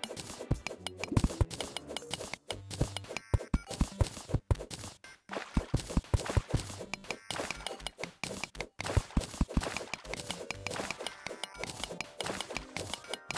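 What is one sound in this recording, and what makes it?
A video game pickaxe chips through dirt and ore in rapid thuds.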